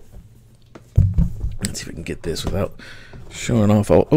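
Metal latches on a hard case click open.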